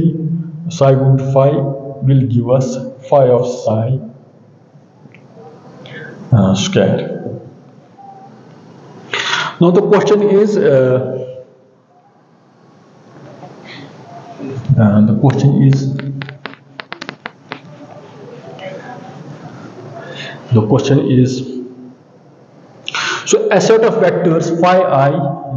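A middle-aged man lectures calmly.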